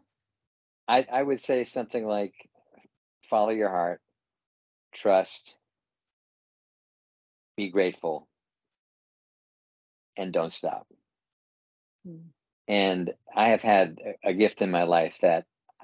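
A middle-aged man speaks with animation over an online call, with pauses between phrases.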